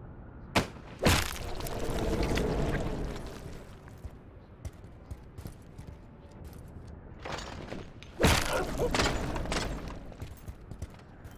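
A heavy blast booms and rumbles away.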